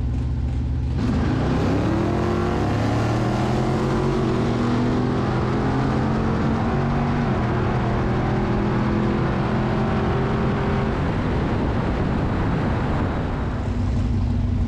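A V8 engine roars at full throttle, climbing through the gears.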